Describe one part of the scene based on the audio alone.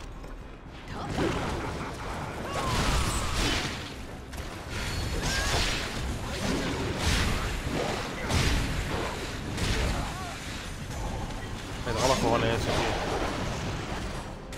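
Blades slash and strike hard against a large beast.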